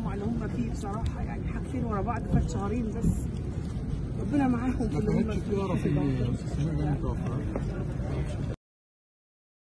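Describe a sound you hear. Several men talk over one another nearby in a crowd.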